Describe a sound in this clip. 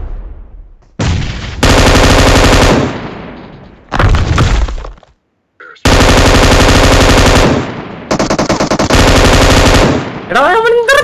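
Rapid gunfire blasts loudly in bursts.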